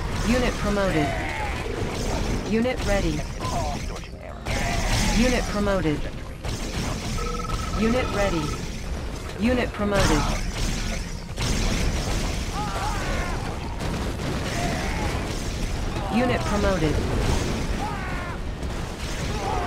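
Gunfire and explosions crackle from a battle in a game.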